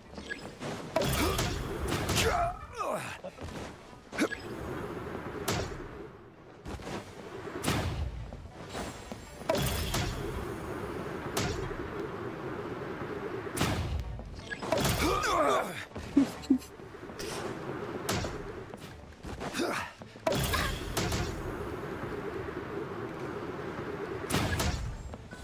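Magical effects burst and shimmer in quick flashes.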